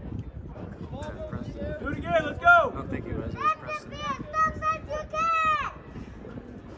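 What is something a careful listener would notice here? Women in a nearby crowd shout and cheer excitedly.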